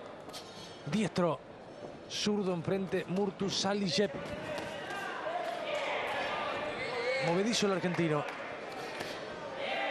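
Boxing gloves thud against a body as punches land.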